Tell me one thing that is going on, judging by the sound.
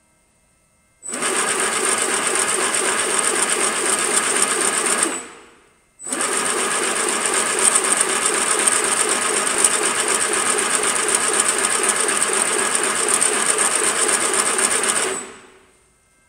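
A packing machine runs with a steady, rhythmic mechanical clatter, pausing briefly.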